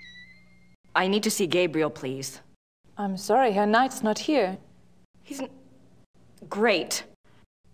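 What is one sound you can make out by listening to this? A young woman speaks with alarm, close by.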